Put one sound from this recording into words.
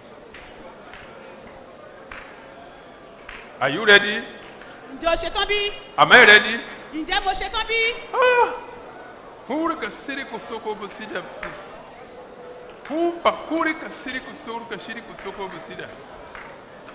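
A crowd of women pray aloud together in an echoing hall.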